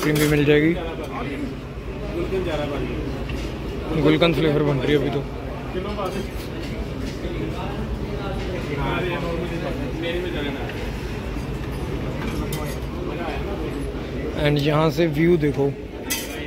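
A metal spatula scrapes and taps on a cold steel plate.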